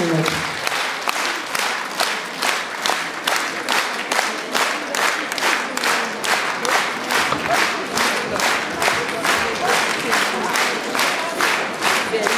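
An audience claps in a steady rhythm.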